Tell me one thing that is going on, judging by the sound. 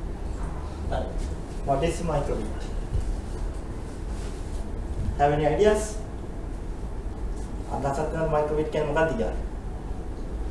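A man speaks to an audience in a large echoing hall.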